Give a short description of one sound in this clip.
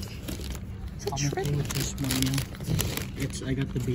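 Paper wrapping crinkles under a hand.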